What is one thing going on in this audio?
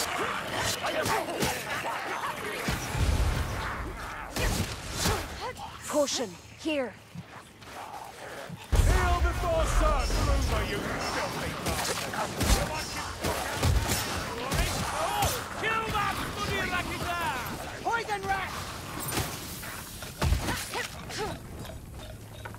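Creatures screech and snarl as they attack.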